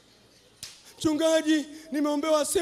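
A man speaks loudly with emotion through a microphone.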